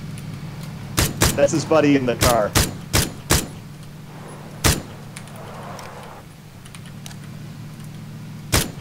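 Rifle shots crack out one after another.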